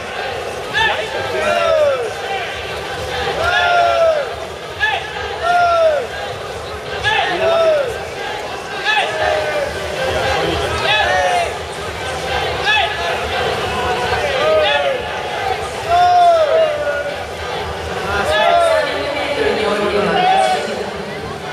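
Swimmers splash steadily through the water.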